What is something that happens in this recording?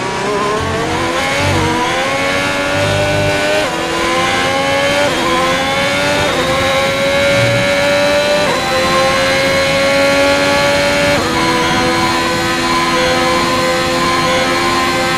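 A racing car engine screams at high revs, rising in pitch and dropping briefly with each gear shift.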